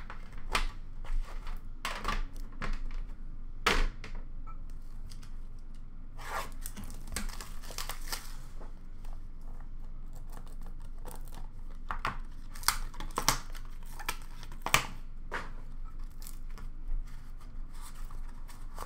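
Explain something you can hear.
Plastic card boxes knock and rattle as hands handle them.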